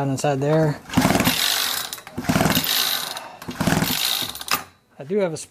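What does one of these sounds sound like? A small engine turns over in short, rattling bursts.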